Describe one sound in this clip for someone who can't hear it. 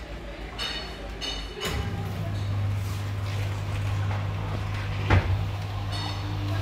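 A machine beeps with short high tones.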